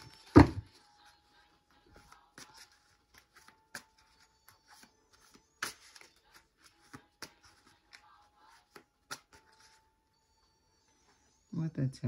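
Playing cards rustle and tap softly as they are handled.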